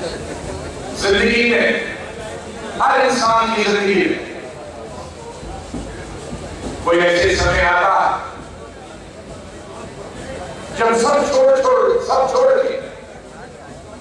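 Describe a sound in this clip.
An elderly man speaks slowly through a microphone and loudspeakers, in bursts with pauses between.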